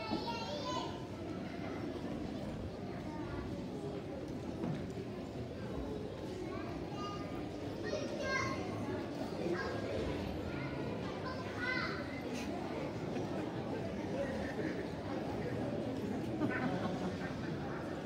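A crowd of children sings together in a large echoing hall.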